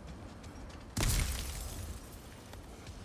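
Lightning strikes with a sudden loud crack and a fading rumble.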